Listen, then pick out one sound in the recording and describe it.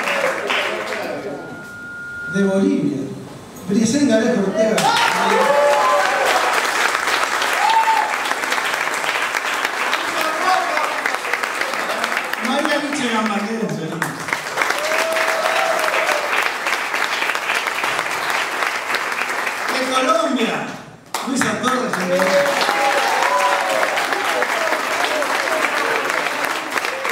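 A young man speaks with animation to an audience.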